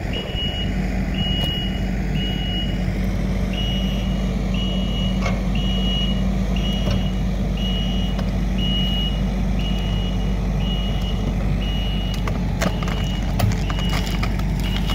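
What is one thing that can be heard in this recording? A reversing alarm beeps at an even pace.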